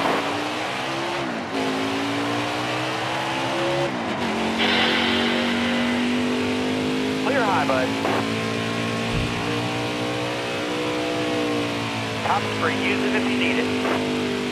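A truck engine roars steadily, its pitch rising and dropping with gear shifts.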